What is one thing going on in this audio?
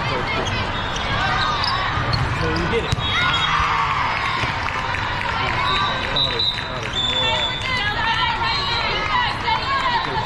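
A volleyball thuds as players hit it.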